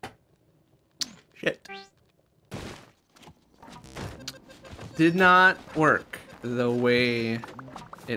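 Game sound effects chime and blip.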